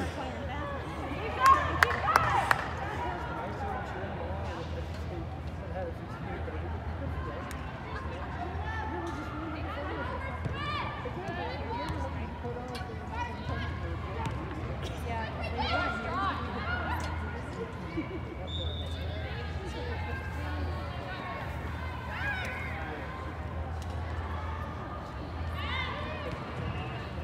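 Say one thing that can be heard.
Young women shout and call out in a large echoing hall.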